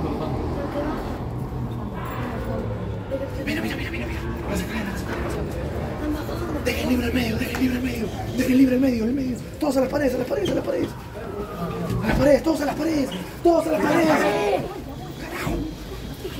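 Young women talk and scream excitedly nearby.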